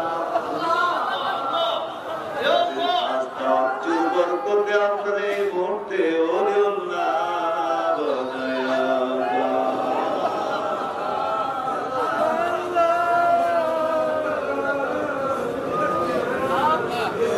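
A man chants loudly and melodiously through a microphone and loudspeakers.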